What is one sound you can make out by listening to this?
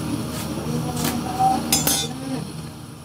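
Metal tongs clatter onto a hard surface.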